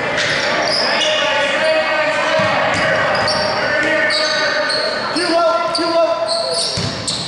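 Spectators murmur and call out in the background.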